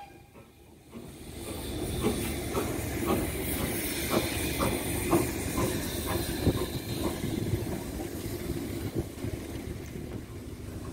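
A train rumbles past on the rails.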